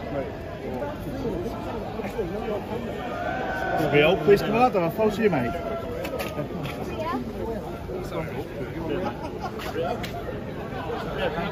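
A crowd of men chat and call out all around, close by, outdoors.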